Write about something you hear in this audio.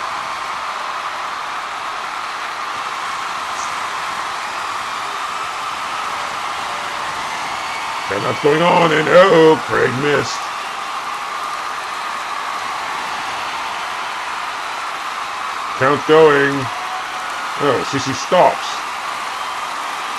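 A large crowd roars steadily in an arena.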